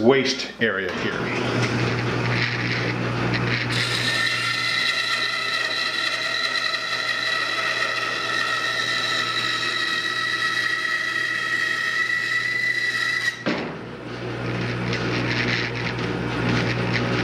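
A band saw motor runs.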